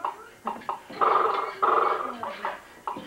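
A baby squeals loudly nearby.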